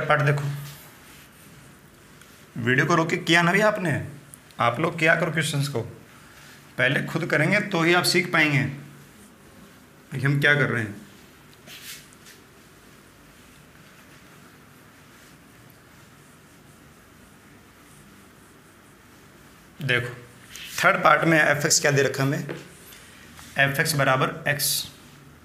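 A man speaks clearly and steadily, as if explaining.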